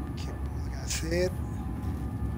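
A man makes a short sound with his voice, close to a microphone.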